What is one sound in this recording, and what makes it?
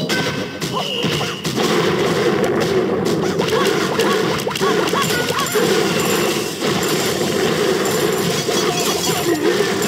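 Small cartoon weapons clash and crash in a busy battle.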